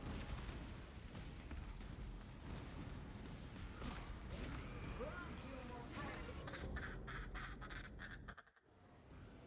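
Magic spells crackle and boom in a game battle.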